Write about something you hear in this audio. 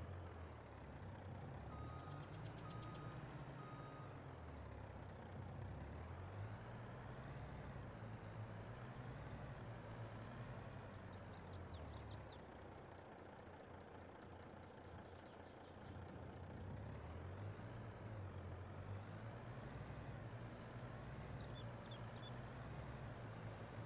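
A truck engine rumbles low and steady as the truck drives along.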